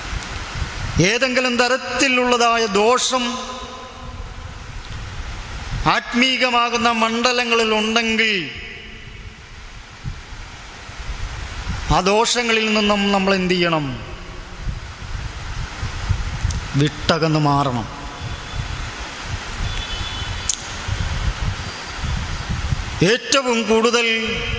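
A young man sings slowly into a microphone, in long drawn-out phrases with pauses between them.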